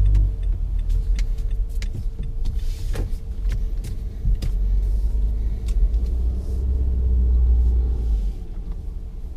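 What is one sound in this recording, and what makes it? Tyres rumble on the road as a car drives, then go quiet as it stops.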